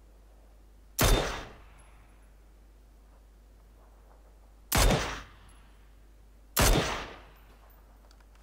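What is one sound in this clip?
A rifle fires single loud shots that echo across open ground.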